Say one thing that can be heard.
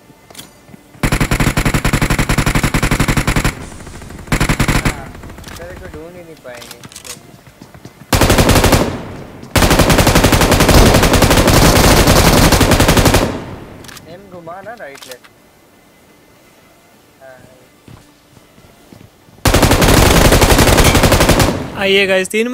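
A rifle fires in loud, rapid bursts.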